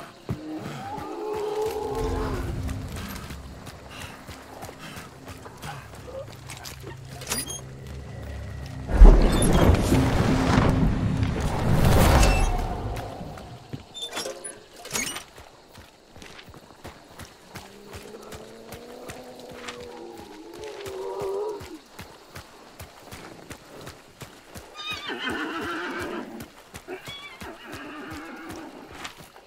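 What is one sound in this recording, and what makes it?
Footsteps crunch on soft, wet ground.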